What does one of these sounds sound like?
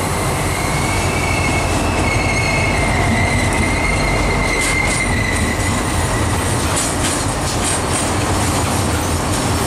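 Freight wagons clatter and rumble over the rail joints.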